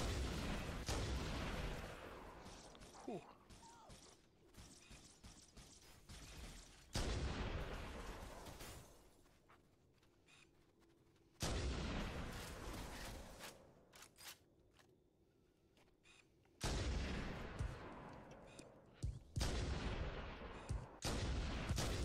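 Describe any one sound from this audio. A sniper rifle fires loud, booming shots that echo away.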